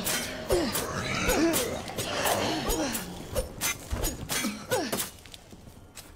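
A zombie groans and snarls up close.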